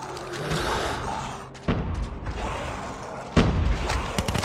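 A rocket launcher fires with a loud blast.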